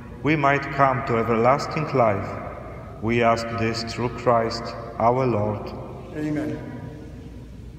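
A man sings a chant through a microphone in a large echoing hall.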